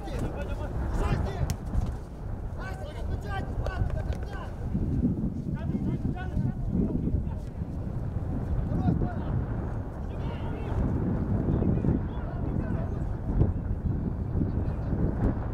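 A football is kicked on grass with dull thuds.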